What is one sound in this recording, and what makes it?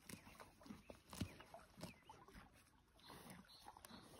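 A horse tears and chews grass close by.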